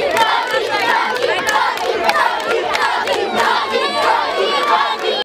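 A crowd of children shouts and cheers excitedly close by.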